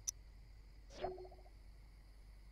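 A soft game notification chime sounds once.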